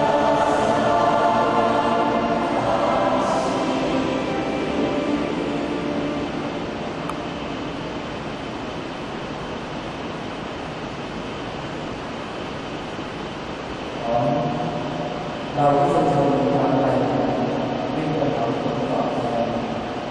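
A large choir sings in harmony outdoors.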